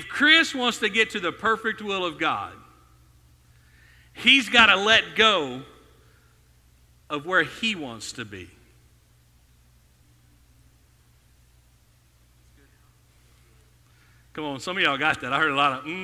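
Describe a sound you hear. A man speaks with animation into a microphone, heard through loudspeakers in a large room.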